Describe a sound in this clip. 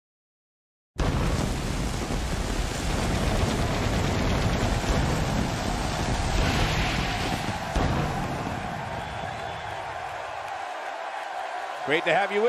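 A large crowd cheers and roars in a big echoing arena.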